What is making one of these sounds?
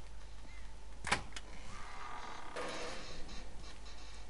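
A metal door latch clicks and the door swings open.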